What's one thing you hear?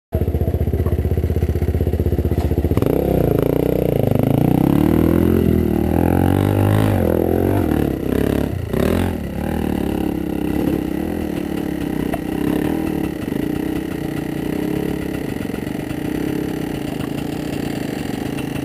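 A dirt bike engine idles close by.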